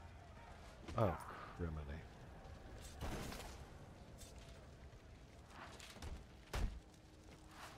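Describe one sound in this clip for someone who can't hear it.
Heavy punches land with dull thuds in a brawl.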